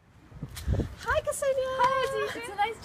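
A young woman speaks excitedly up close.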